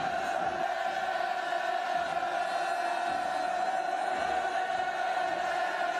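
A woman sobs and cries out.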